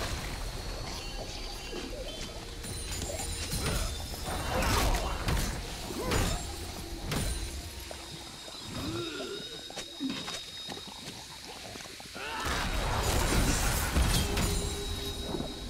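Magic blasts whoosh and crackle in a busy video game fight.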